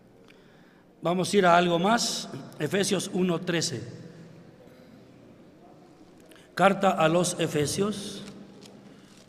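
An elderly man speaks slowly and firmly through a microphone, in a large echoing hall.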